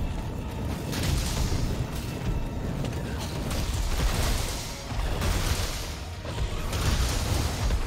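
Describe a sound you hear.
Rays of energy whoosh and hiss.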